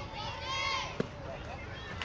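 A metal bat cracks sharply against a ball.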